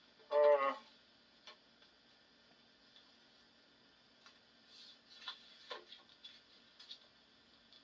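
A vinyl record slides and rustles against its paper sleeve.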